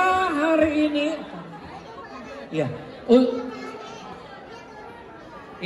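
A band plays lively music.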